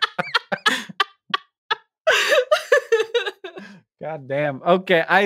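A young man laughs over a headset microphone in an online call.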